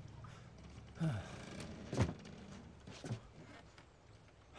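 A man grunts and gasps with effort.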